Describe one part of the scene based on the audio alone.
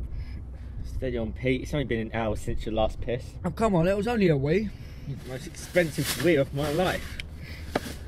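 A young man speaks in a car.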